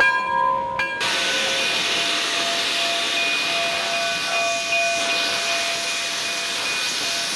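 Steam hisses loudly from a locomotive.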